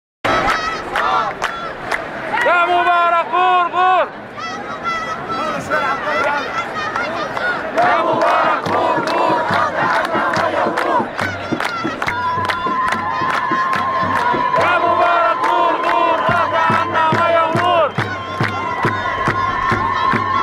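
A large crowd chants loudly and rhythmically outdoors.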